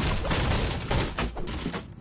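A pickaxe strikes a hard surface.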